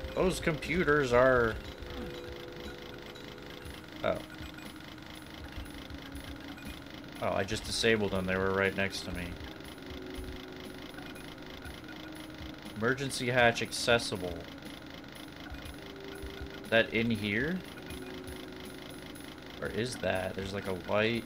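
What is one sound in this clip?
A chainsaw idles with a low, steady sputter.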